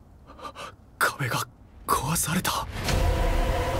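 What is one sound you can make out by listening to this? A young man exclaims in shock.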